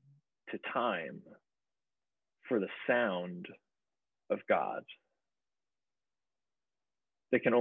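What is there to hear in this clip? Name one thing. A man speaks calmly and slowly, in short phrases, through a microphone over an online call.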